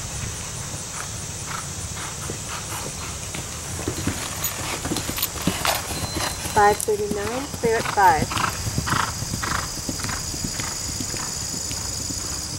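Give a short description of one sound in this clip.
A horse gallops past on grass, hooves thudding in a steady rhythm, growing louder and then fading away.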